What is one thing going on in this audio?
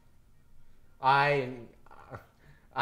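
A young man speaks excitedly up close.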